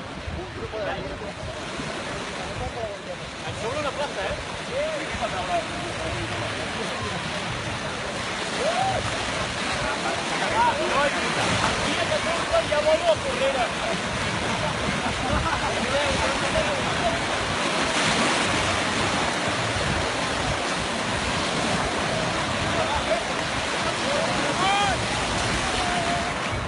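Young people shout and chatter nearby outdoors.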